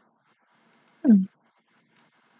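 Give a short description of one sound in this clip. A young woman close by briefly makes a short vocal sound that falls in pitch.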